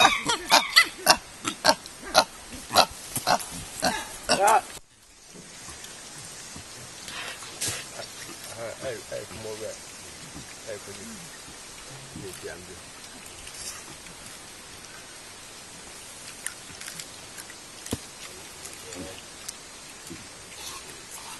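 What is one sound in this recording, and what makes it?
Chimpanzees chew and smack noisily on fruit close by.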